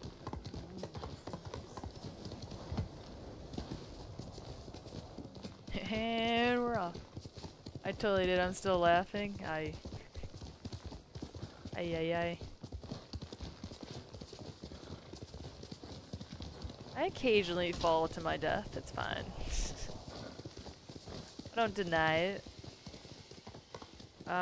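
Horse hooves thud at a gallop.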